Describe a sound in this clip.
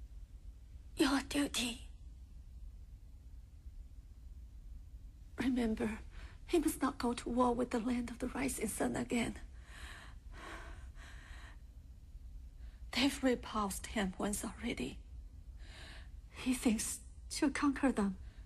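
A woman speaks weakly and quietly, close by.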